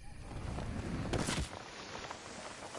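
A heavy thud sounds on landing.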